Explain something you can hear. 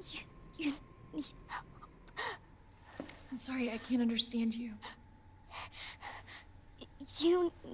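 A young girl speaks timidly.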